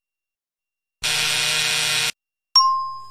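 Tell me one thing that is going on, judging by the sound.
A game die rolls with a short burst of rattling noise.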